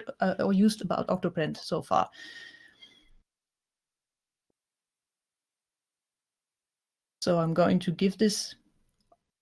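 A woman speaks with animation over an online call microphone, with pauses.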